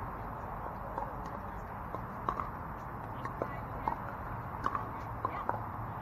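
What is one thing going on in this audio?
Paddles pop sharply against a plastic ball, again and again.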